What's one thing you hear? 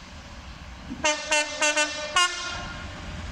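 A Class 66 diesel locomotive sounds a two-tone horn in short blasts.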